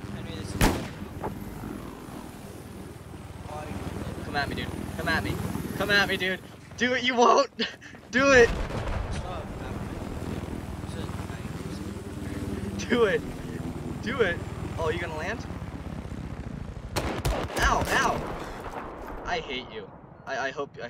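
A helicopter's rotor thumps steadily overhead.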